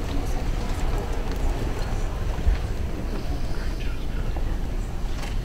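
A crowd of men and women murmurs and chatters quietly nearby.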